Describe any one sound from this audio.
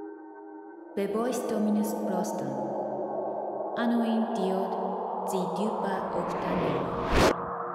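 A young woman speaks urgently.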